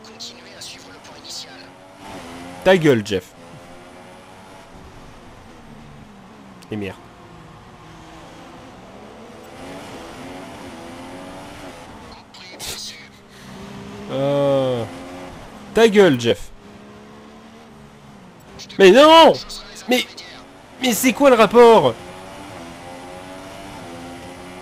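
A racing car engine whines loudly, rising in pitch and dropping as it changes gear.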